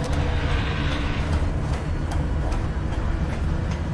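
Footsteps clank on a metal ladder.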